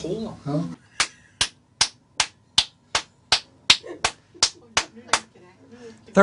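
A man claps his hands in a steady rhythm.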